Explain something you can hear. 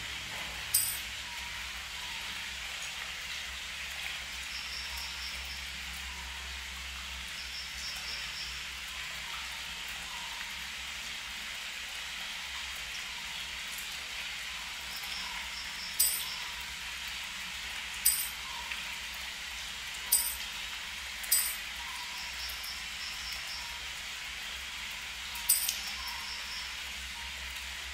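Shallow water trickles gently over stones outdoors.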